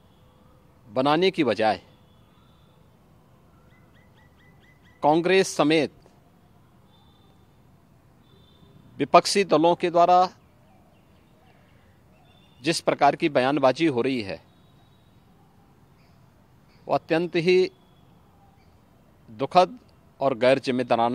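A middle-aged man speaks into a close microphone, calmly and firmly, in short bursts with pauses.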